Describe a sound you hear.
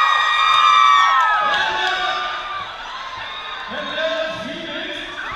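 A large crowd screams and cheers loudly in an echoing hall.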